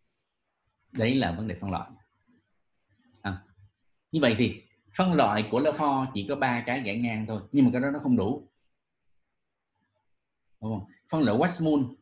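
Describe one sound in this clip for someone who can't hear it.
A man lectures calmly, heard through a microphone on an online call.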